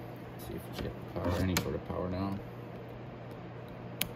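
A metal clamp clicks onto a battery terminal.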